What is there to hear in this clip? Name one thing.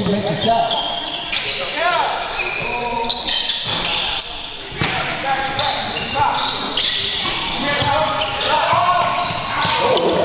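Spectators chatter and call out in the echoing gym.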